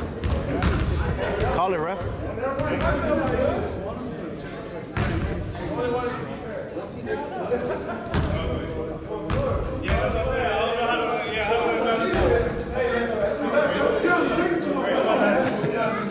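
A basketball bounces on a wooden floor with a sharp echo in a large hall.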